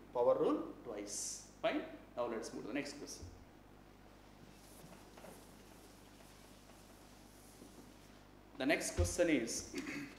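A middle-aged man speaks calmly and clearly nearby, as if teaching.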